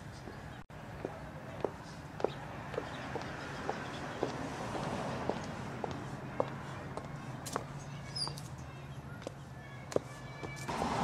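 Footsteps tap on a concrete path.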